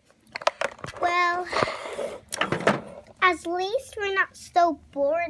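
A young girl speaks with animation close to the microphone.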